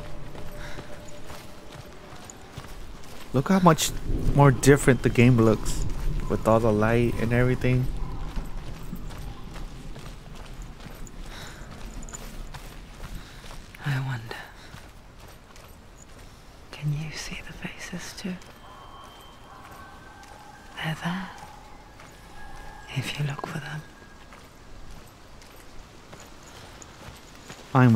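Footsteps run over dirt and stone.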